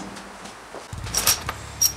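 Steel bolts and washers clink together.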